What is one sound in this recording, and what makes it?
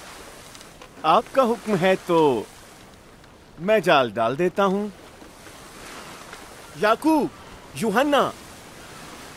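A man speaks loudly with animation nearby.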